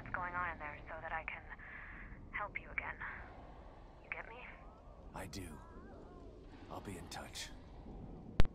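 A man speaks calmly into a radio, close by.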